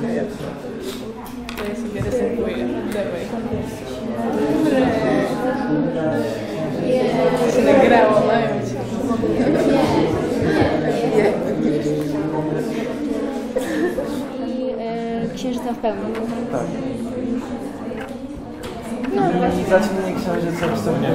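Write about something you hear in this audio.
Teenagers chatter in several overlapping voices close by.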